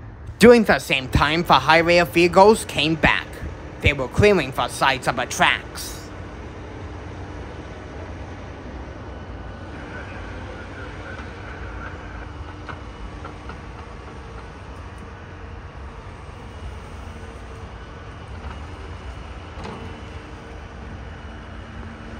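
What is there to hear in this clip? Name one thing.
An excavator engine idles with a low steady rumble in the distance.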